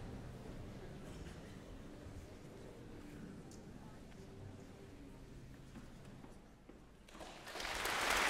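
An orchestra plays softly.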